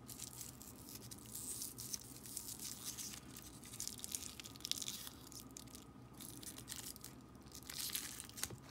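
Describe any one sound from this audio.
Candy wrappers crackle as they are twisted open.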